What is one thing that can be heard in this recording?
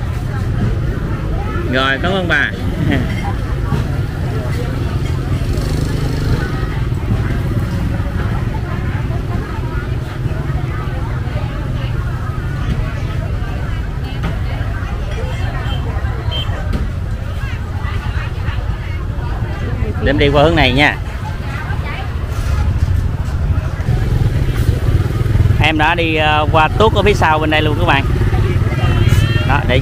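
A busy outdoor market murmurs with many voices.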